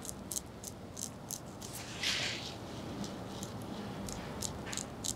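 A straight razor scrapes short strokes across stubble, close by.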